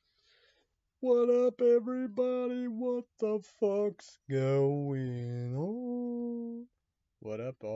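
A young man sings loudly with a strained, drawn-out voice.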